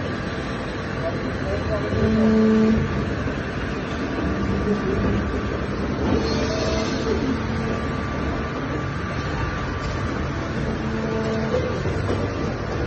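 A robotic arm whirs as its motors move.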